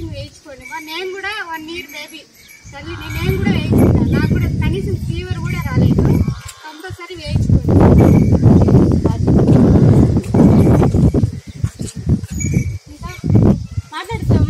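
A group of women shout slogans together outdoors.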